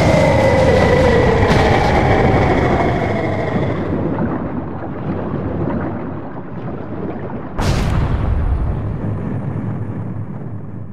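Stone blocks rumble and crash as they fall.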